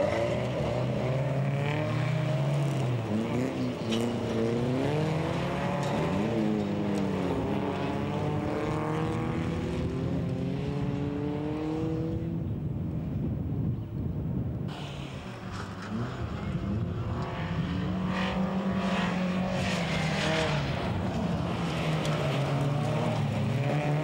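Folkrace car engines rev hard as the cars race on a dirt track.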